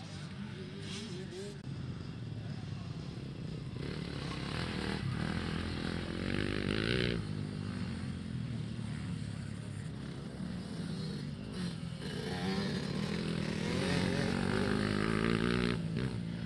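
Motorcycle engines rev loudly and rise and fall in pitch.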